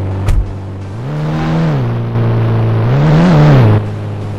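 A truck engine revs up and down.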